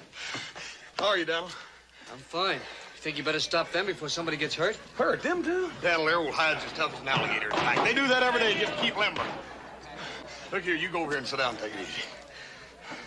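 A man speaks loudly and heartily, close by.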